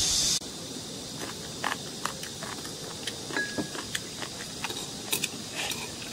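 A woman chews and slurps food close by.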